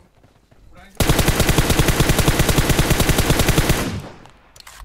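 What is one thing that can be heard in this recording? A rifle fires a long, rapid burst of shots.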